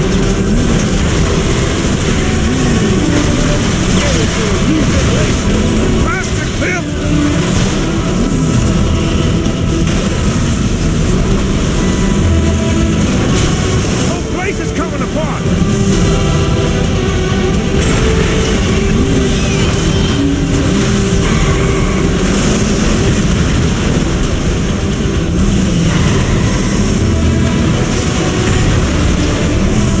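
A car engine roars steadily at speed.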